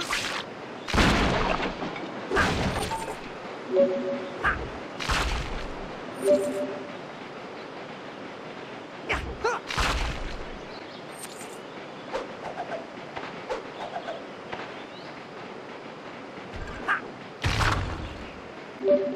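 Rocks burst apart with loud, heavy crashes.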